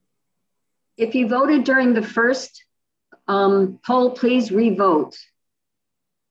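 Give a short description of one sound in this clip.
A middle-aged woman speaks with animation over an online call.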